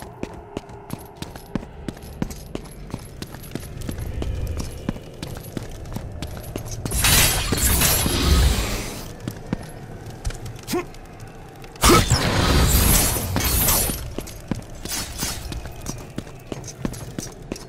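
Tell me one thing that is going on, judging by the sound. Footsteps patter on a stone floor.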